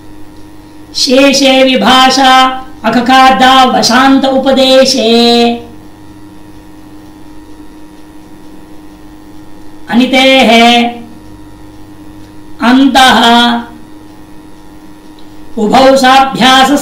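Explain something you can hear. A man chants in a steady, sung voice, in short phrases with pauses between them.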